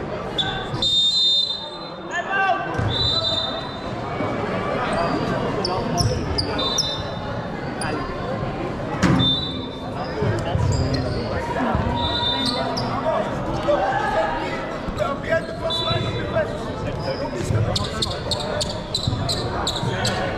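Sneakers squeak sharply on a hardwood court, echoing in a large hall.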